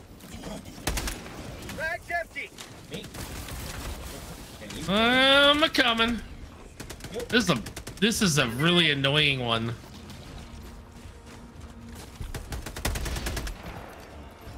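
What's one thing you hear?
Gunfire bursts out in short volleys.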